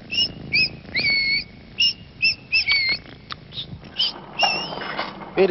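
A small bird chirps and whistles in short, bright bursts.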